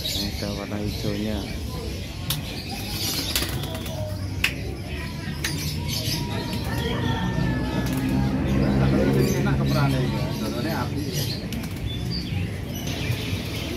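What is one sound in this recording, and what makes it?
Men talk nearby in casual voices.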